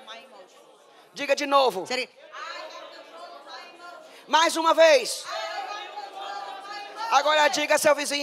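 A middle-aged woman speaks into a microphone, heard through loudspeakers.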